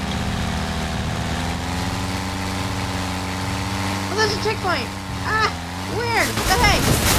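A propeller plane engine drones steadily and then cuts out.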